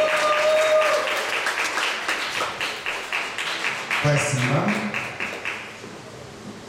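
A group of people clap in rhythm.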